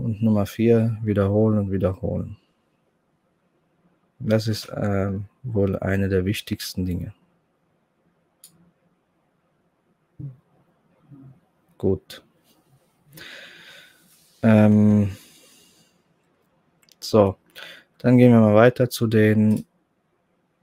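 A man speaks calmly and close to a microphone, in short bursts with pauses.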